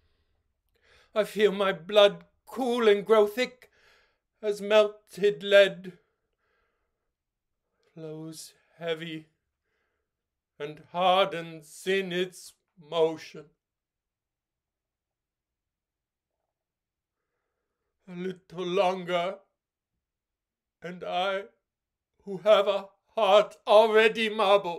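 A middle-aged man speaks with animation, close to the microphone, in short bursts with pauses.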